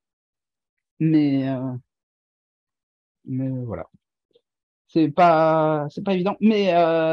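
A man speaks calmly into a microphone, heard as if through an online call.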